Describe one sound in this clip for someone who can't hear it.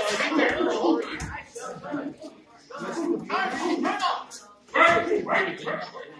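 Men shout loudly and excitedly nearby.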